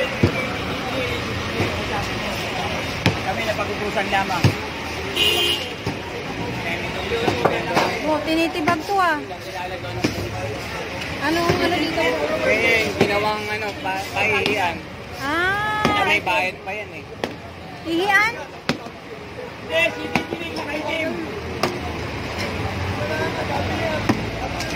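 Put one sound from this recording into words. Several men talk and shout excitedly nearby, outdoors.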